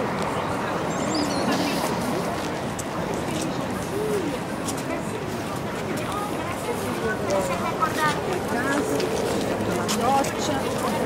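Passing men and women chat nearby as they walk by.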